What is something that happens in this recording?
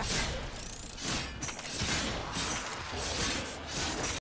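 Game explosions boom.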